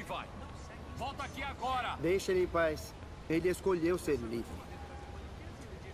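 A second man answers firmly, close by.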